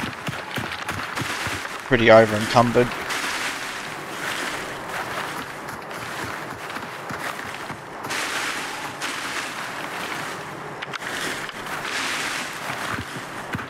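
Leaves and branches rustle as someone pushes through bushes.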